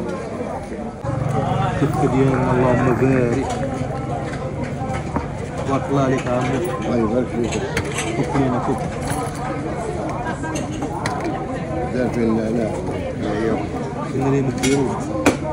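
An elderly man talks nearby.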